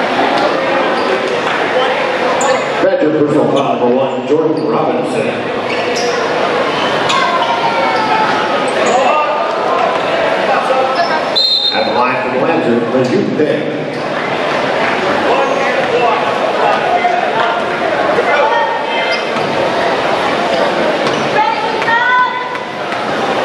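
A basketball bounces on a hardwood floor.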